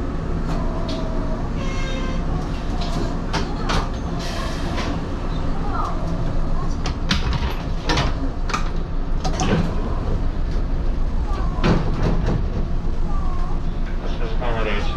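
A train engine hums steadily while idling.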